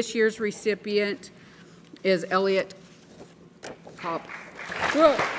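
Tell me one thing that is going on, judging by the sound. A middle-aged woman speaks calmly into a microphone over a loudspeaker in a large hall.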